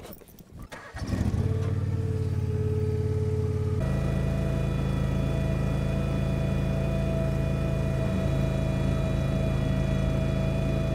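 A mower engine runs with a steady drone.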